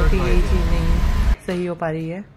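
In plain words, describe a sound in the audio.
A car engine rumbles in traffic.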